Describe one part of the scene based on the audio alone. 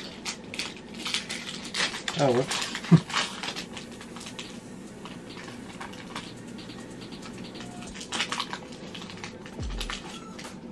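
A foil card pack crinkles and rustles in hands.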